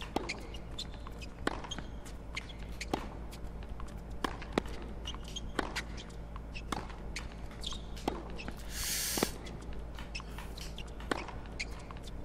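A tennis ball is struck back and forth with rackets.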